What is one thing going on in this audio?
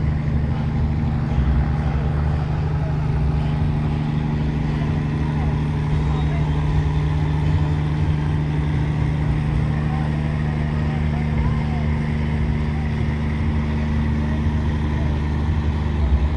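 A generator hums loudly and steadily.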